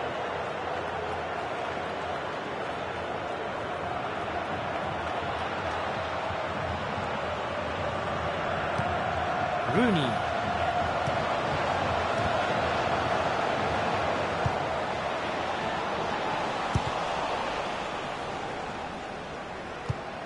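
A stadium crowd roars steadily, swelling midway.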